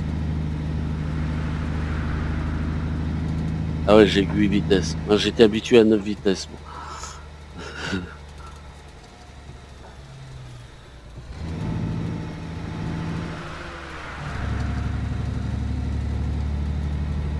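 A heavy truck's diesel engine drones from inside the cab.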